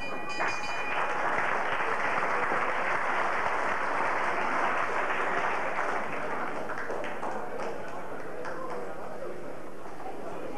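A crowd of spectators applauds in a hall.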